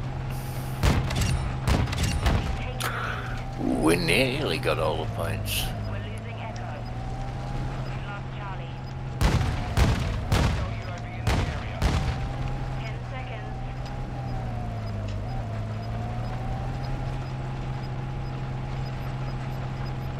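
A tank engine rumbles and whines steadily.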